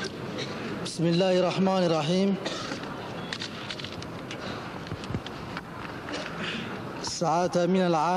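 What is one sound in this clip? A second man speaks slowly and formally into a microphone over a loudspeaker.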